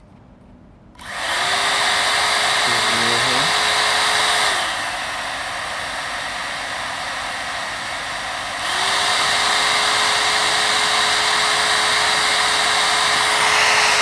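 A hair dryer switches on and blows with a steady rushing whoosh.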